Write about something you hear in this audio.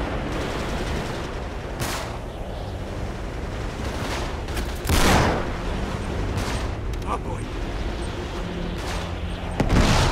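Gunfire cracks in the distance.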